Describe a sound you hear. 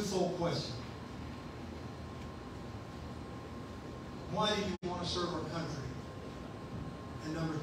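A man speaks calmly into a microphone, heard through a loudspeaker in a room.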